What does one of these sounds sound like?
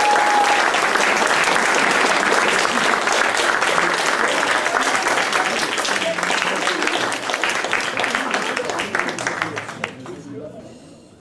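An audience applauds in a large hall and the clapping dies away.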